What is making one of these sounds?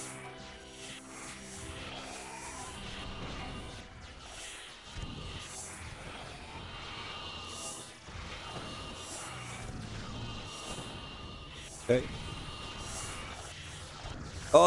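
Fireballs whoosh and burst as monsters are shot.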